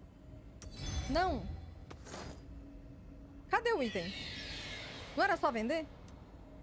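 A young woman speaks into a microphone close up, in a lively, sing-song way.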